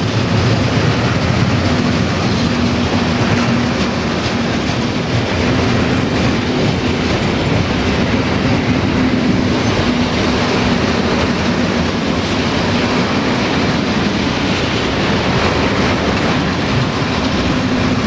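A freight train rumbles past close by, wheels clattering on the rails.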